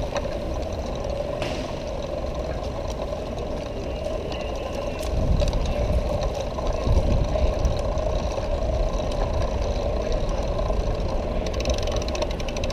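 Small wheels rumble and rattle over paving stones.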